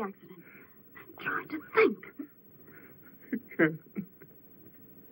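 A woman speaks tearfully up close.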